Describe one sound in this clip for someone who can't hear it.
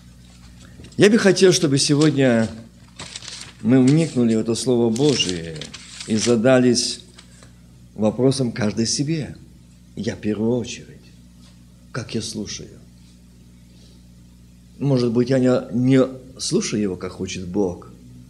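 A middle-aged man speaks calmly into a microphone in an echoing room.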